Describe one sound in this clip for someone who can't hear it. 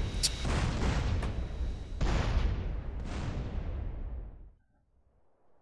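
Loud explosions boom and rumble, then fade away.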